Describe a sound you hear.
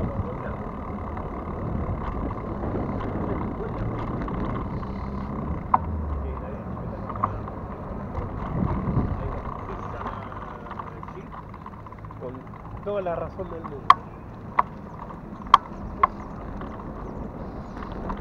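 Bicycle tyres hum on a rough road.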